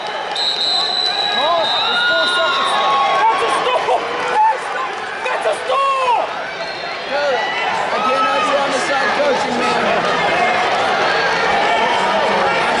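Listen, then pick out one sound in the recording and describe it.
Sneakers squeak on a mat.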